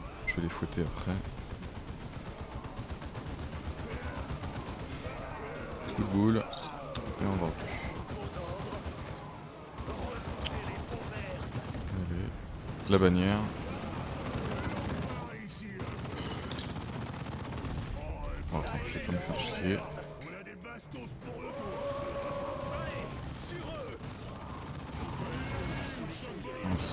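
Guns fire in rapid bursts during a battle.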